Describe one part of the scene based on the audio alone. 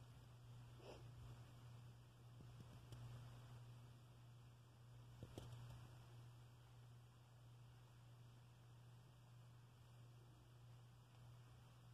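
A cat purrs softly and steadily close by.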